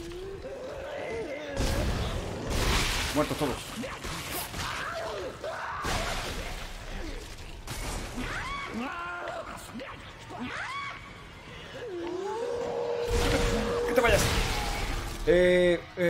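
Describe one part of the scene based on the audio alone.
Gunshots and blasts burst out in a game.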